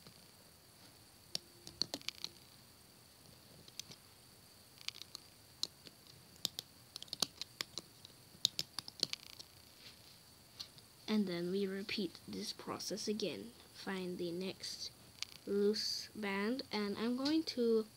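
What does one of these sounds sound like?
Rubber bands snap and tick softly against a plastic loom.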